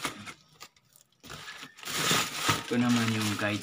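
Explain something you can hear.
Cardboard rustles and scrapes as a box is cut open.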